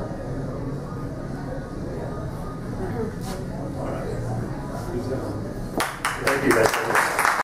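A man speaks calmly into a microphone over a loudspeaker.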